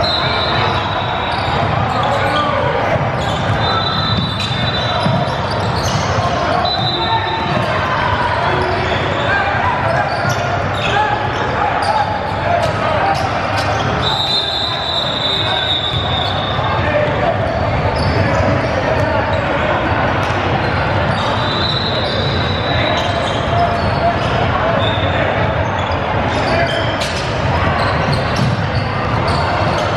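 A crowd of young players and spectators chatters in a large echoing gym.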